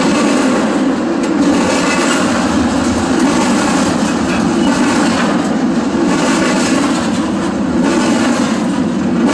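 A freight train rumbles past close by, loud and steady.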